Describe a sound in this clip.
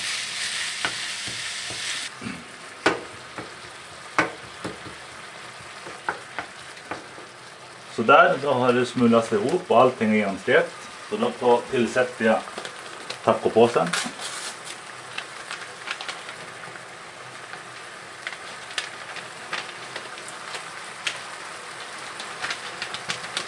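Ground meat sizzles in a hot pan.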